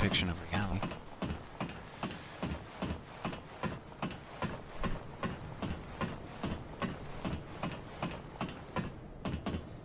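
An armoured knight climbs a metal ladder with steady clanking steps.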